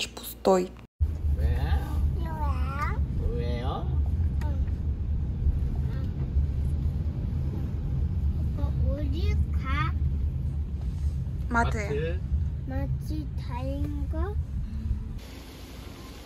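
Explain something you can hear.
A car's engine and road noise rumble low and steadily from inside the car.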